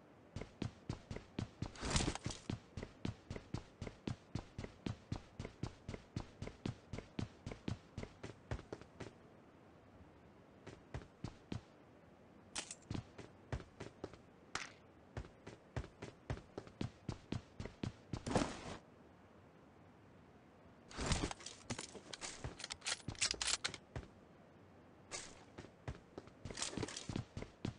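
Quick footsteps patter steadily on hard ground.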